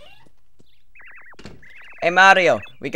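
Short electronic chirps sound in quick succession.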